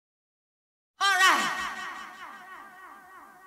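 A young woman exclaims in surprise close by.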